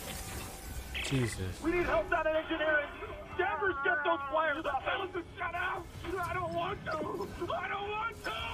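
A young woman speaks through a headset microphone.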